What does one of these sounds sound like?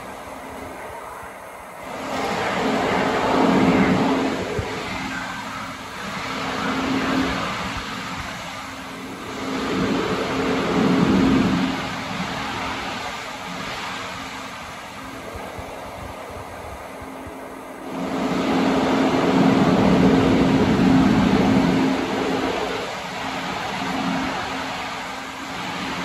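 A stationary train hums steadily in a large echoing hall.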